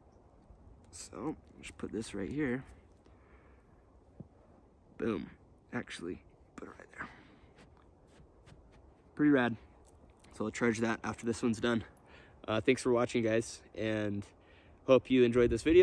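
A young man talks calmly and close to a microphone.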